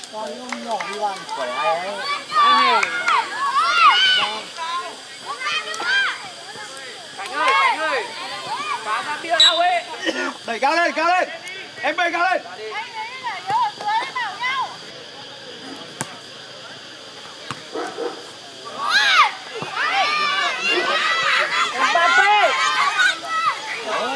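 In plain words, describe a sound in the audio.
Children shout and call out excitedly across an open outdoor field.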